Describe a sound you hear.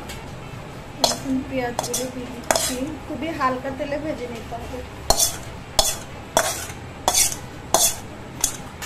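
A metal spatula taps and scrapes on a ceramic plate.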